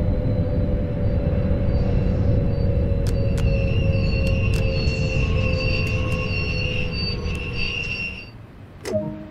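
Train brakes squeal shrilly as the train comes to a stop.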